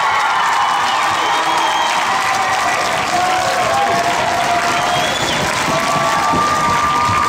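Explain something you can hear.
A man sings loudly through a microphone in a large echoing hall.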